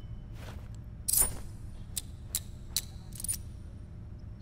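Sharp metallic hits ring out several times.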